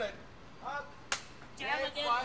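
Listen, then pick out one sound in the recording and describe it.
A clapperboard snaps shut.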